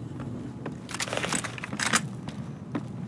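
A rifle clatters as it is swapped for another.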